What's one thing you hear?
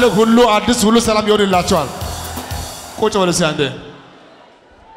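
A large crowd sings and cheers loudly in a big echoing hall.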